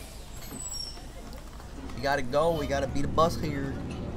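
Bus doors hiss and thud shut.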